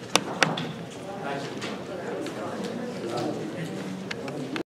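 A man talks quietly in a hall, heard from a distance.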